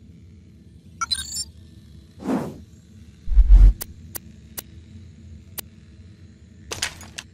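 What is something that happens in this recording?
Game menu sounds click and whoosh as menus change.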